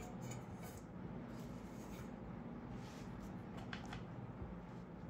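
A ceramic plate clinks as it is set down on a hard table.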